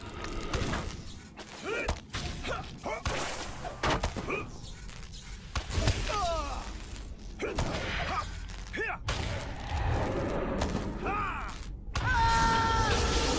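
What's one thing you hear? A sword clashes and strikes repeatedly in combat.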